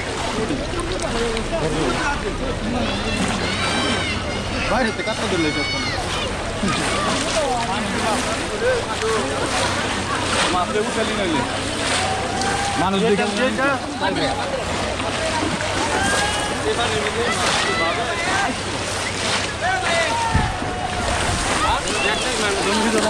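Many men and children shout and chatter nearby outdoors.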